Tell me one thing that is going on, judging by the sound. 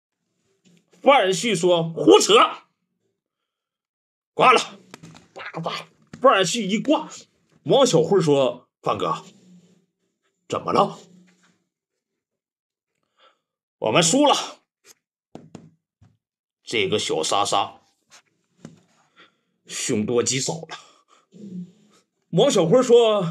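A young man talks dramatically and with animation, close by, in short bursts.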